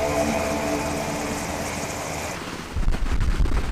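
Helicopter engines whine at idle nearby.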